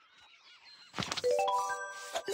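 A short series of rising chime notes plays.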